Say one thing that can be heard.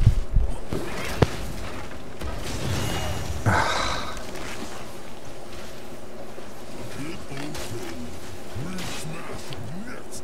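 Game combat effects clash and zap.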